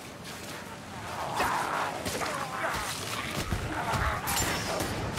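A blade strikes an enemy with heavy thuds.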